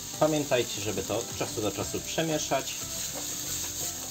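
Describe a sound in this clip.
Food shifts and rattles as a frying pan is tossed.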